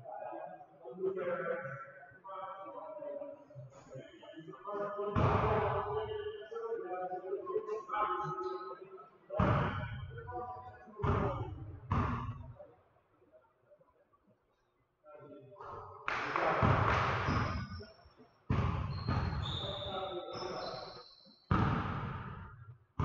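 Men talk and call out in a large echoing hall.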